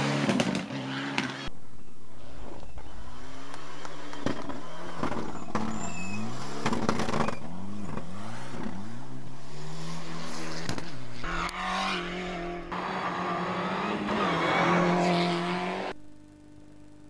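A rally car engine roars and revs hard, rising and falling in pitch as the gears shift.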